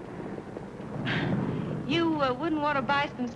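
A young woman speaks brightly nearby.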